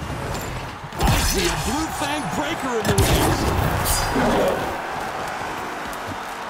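A whooshing burst sounds as a figure dashes forward.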